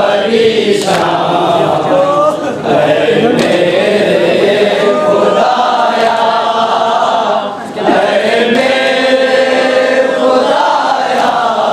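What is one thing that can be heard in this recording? A crowd of men chants a mournful lament loudly.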